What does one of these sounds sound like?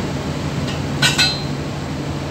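A cupboard door clicks shut.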